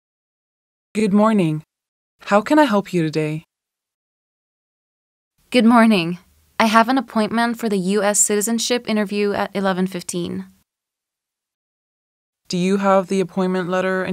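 A woman speaks politely into a headset microphone.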